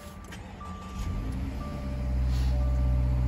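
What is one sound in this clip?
A flat-four car engine starts up.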